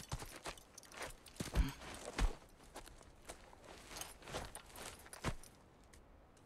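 Armor and leather rustle and clink as a boy sits down on the ground.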